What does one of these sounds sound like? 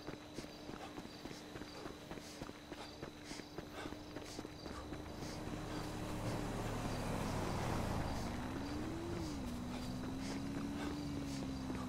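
Footsteps run quickly on a dirt road.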